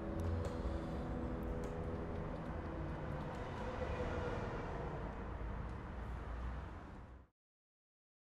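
A piano plays a soft, slow tune and fades away.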